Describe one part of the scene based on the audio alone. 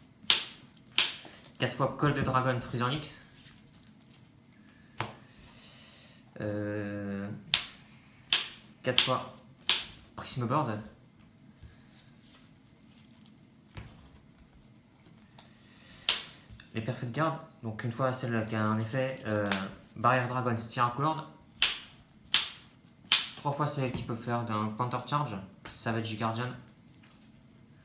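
Playing cards tap and slide softly on a table mat.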